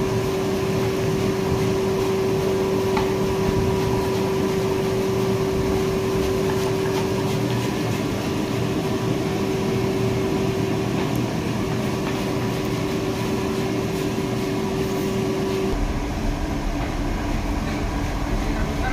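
Hot oil sizzles and bubbles steadily in a large pan.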